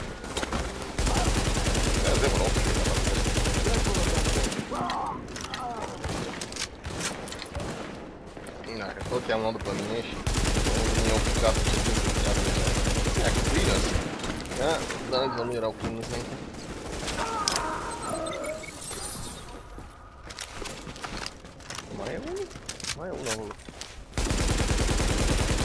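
A rifle fires rapid, loud bursts of gunshots.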